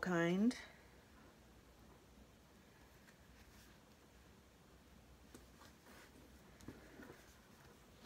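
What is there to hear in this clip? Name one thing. Paper rustles softly as hands press it down.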